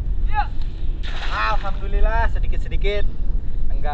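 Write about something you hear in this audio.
A cast net splashes into water.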